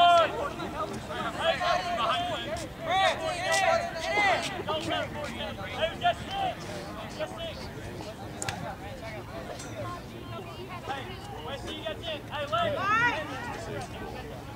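Soccer players shout to each other outdoors.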